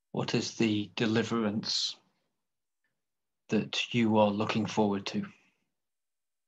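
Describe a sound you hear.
An older man speaks calmly through an online call microphone.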